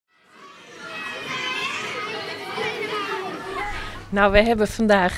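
Children chatter and call out in a lively echoing room.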